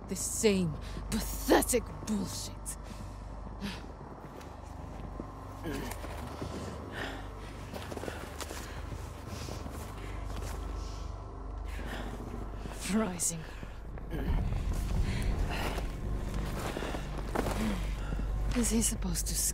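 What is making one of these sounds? A middle-aged man speaks close by in a strained, weary voice.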